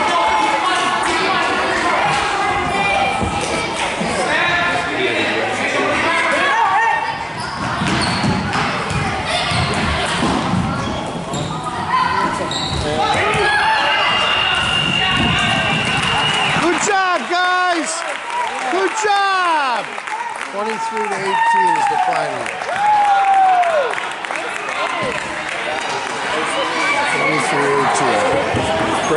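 A crowd of onlookers chatters in the background.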